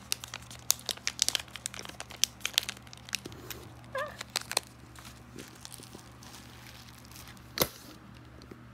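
Bubble wrap crinkles and crackles under handling.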